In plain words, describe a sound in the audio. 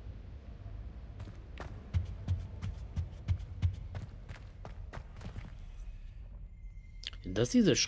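Footsteps tap on a stone floor.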